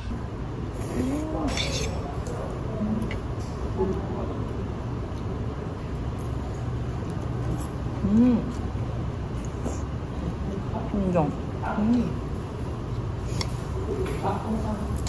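A woman slurps noodles close by.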